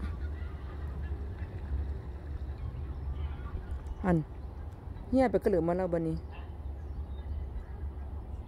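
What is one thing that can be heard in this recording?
Water laps gently against a wooden bank.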